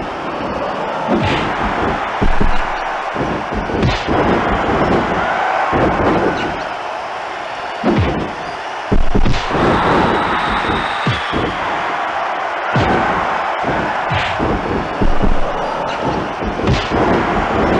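Heavy thuds of blows and bodies hit a wrestling mat.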